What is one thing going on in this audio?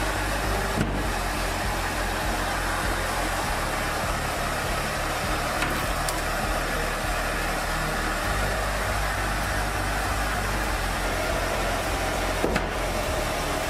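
A metal tray scrapes and clatters against a metal frame.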